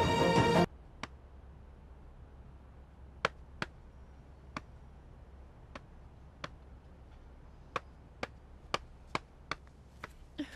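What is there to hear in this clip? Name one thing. Footsteps fall on a hard path.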